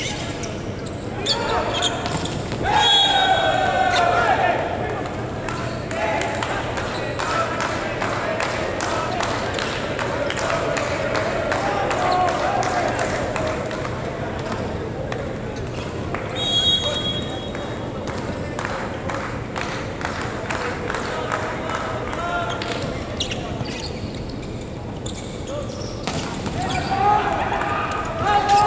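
A volleyball is struck with sharp slaps during a rally.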